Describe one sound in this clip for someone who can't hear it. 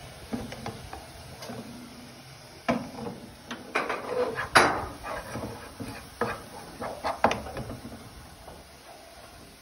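A wooden spoon scrapes and taps against a frying pan.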